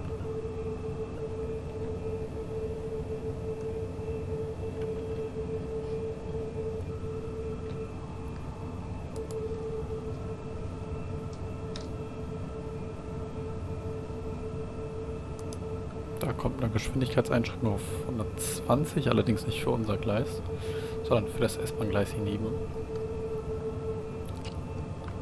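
An electric motor hums with a steady whine.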